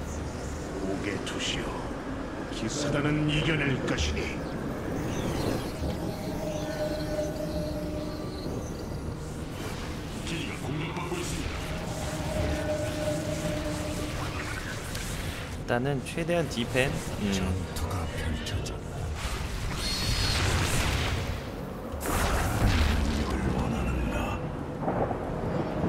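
Game sound effects of units and buildings play throughout.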